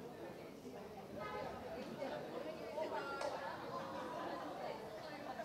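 Women chat with animation close by.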